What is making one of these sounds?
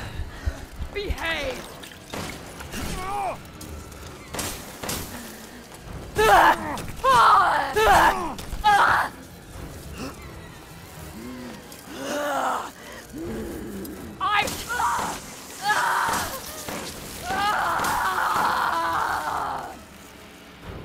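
A woman speaks in a menacing, distorted voice.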